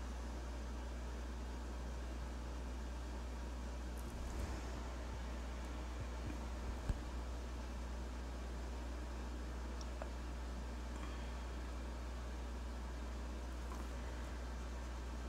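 A marker tip rubs softly across paper.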